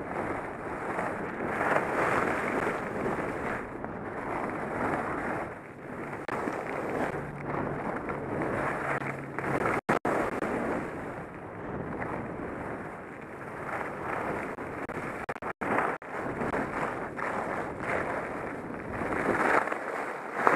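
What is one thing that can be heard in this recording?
Skis hiss and scrape steadily over packed snow.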